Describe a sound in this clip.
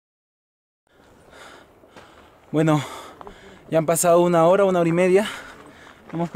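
A young man talks calmly and close up, outdoors.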